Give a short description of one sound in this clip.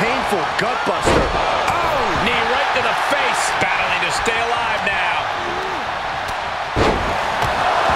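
Heavy bodies thud hard onto a wrestling ring mat.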